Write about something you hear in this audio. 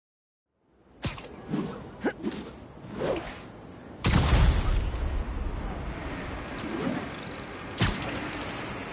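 Webs shoot with sharp snapping bursts.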